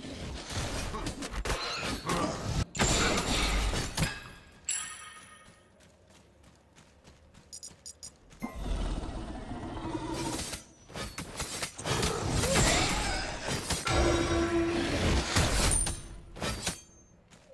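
Loud fighting sound effects clash and burst in quick succession.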